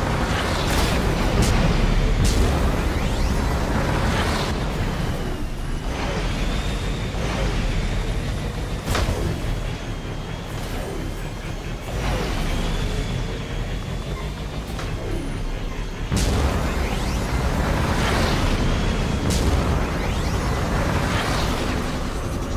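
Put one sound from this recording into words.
A vehicle's thrusters whoosh in sudden bursts.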